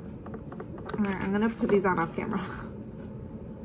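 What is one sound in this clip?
A young woman speaks briefly and with animation, close to the microphone.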